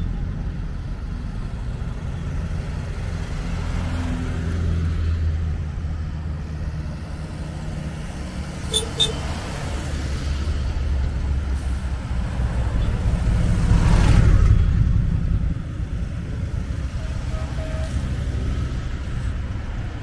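Small vintage cars drive past one after another.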